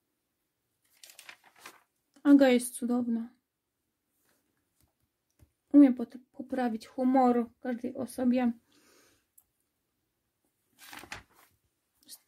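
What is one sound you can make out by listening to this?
Paper pages rustle and flap as they are turned by hand.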